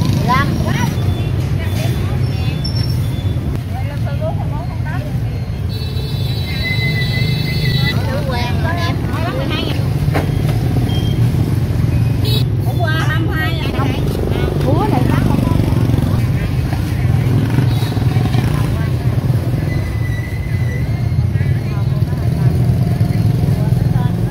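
Women talk with one another close by, amid a murmur of voices outdoors.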